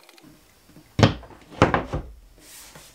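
A plastic box knocks against a wall.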